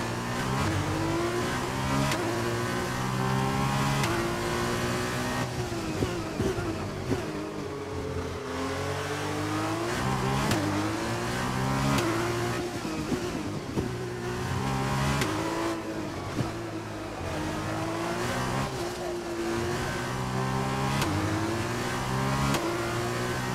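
Gear changes click sharply between engine notes.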